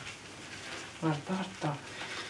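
A puppy whimpers and squeaks.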